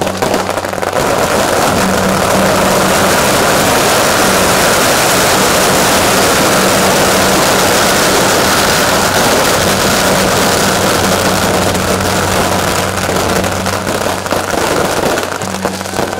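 Firecrackers crackle and bang rapidly and nonstop outdoors.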